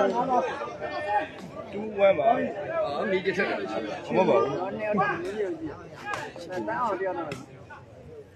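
A crowd of men and boys chatters and shouts outdoors.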